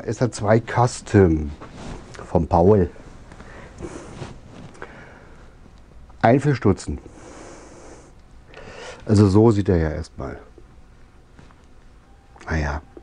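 A middle-aged man talks calmly close by, in bursts with pauses.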